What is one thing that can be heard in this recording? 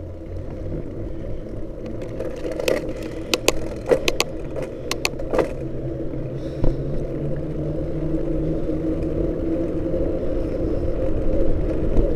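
A car engine hums steadily and grows slightly louder.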